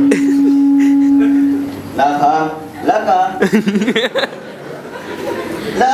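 A young man laughs through a microphone.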